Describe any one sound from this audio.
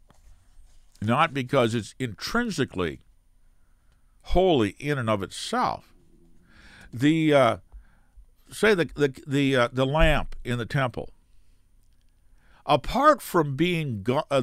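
An elderly man speaks calmly and closely into a microphone, pausing between phrases.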